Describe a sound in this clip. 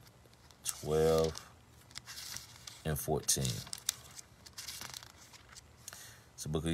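A man speaks calmly and close to a phone microphone, in short bursts with pauses.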